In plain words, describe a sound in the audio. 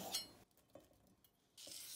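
Pieces of tomato drop softly into a metal pot.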